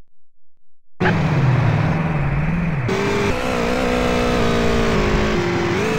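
A motorcycle engine roars and revs.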